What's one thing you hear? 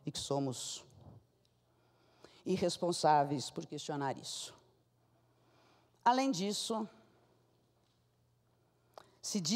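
A woman speaks into a microphone in bursts, heard through loudspeakers in a large hall.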